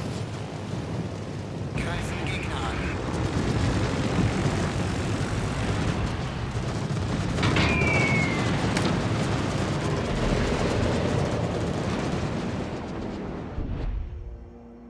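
Aircraft engines drone loudly.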